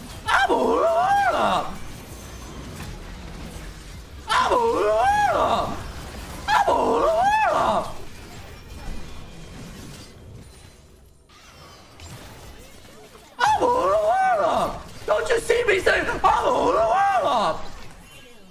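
A young man talks loudly and excitedly into a microphone.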